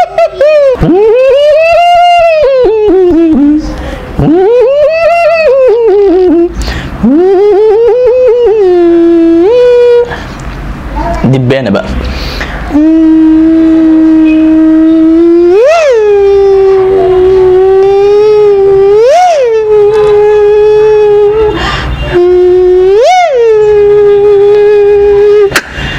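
A young man makes a loud buzzing hum through pursed lips, sliding up and down in pitch.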